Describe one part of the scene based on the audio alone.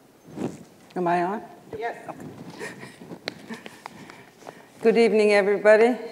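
A middle-aged woman speaks with animation in a large room.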